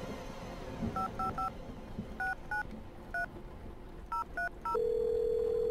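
Phone keypad buttons beep as a number is dialed.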